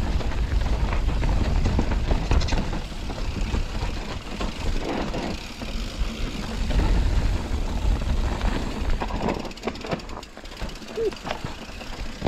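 Wind rushes past as a mountain bike rolls down a rough dirt trail.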